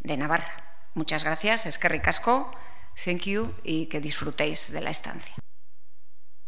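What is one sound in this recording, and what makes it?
A woman speaks calmly into a microphone.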